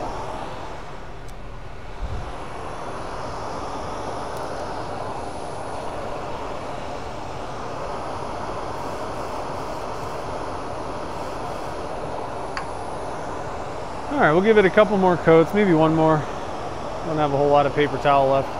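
A lathe motor hums steadily as the spindle turns.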